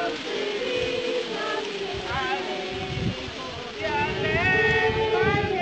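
A crowd of men and women talk and murmur nearby outdoors.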